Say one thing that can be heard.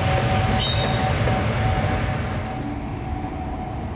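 An electric locomotive rumbles past close by, then fades.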